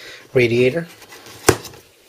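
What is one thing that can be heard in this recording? Sticky tape peels off a cardboard box.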